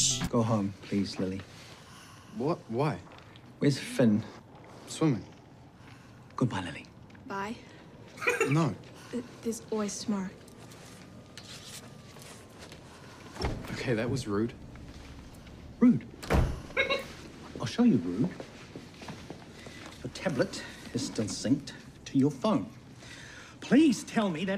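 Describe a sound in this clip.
A middle-aged man speaks calmly and firmly.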